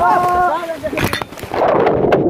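A body splashes into a pool.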